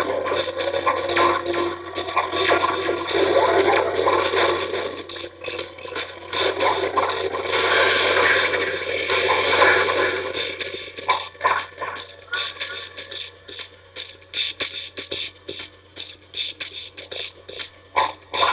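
Video game music plays from a television speaker.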